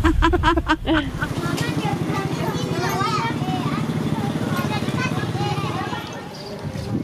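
A motorbike engine putters nearby.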